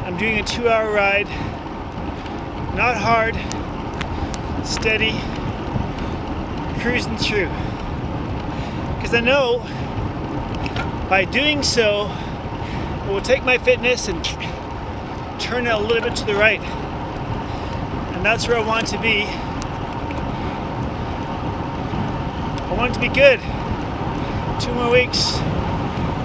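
A man talks close up, a little out of breath.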